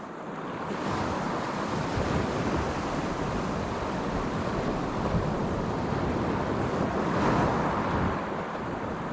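Waves wash onto a pebble shore.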